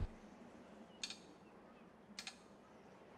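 A clock mechanism ticks softly.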